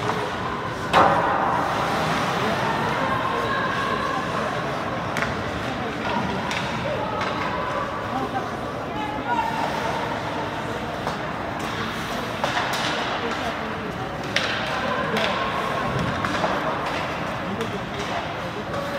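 Skates scrape and hiss on ice.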